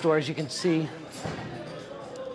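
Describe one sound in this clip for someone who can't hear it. A door latch clicks open.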